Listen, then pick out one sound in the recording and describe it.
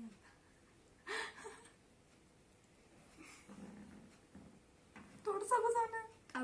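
A young girl laughs loudly close by.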